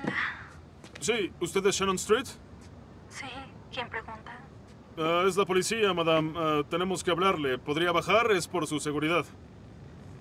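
A young man speaks loudly nearby.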